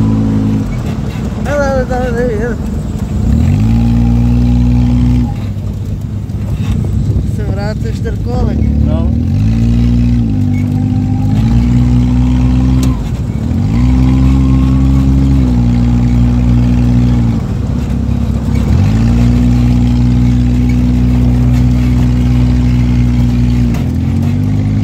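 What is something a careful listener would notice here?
A buggy engine drones loudly, revving up and dropping back again and again.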